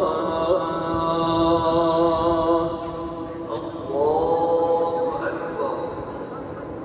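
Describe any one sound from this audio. A man's voice chants slowly over a loudspeaker, echoing through a large hall.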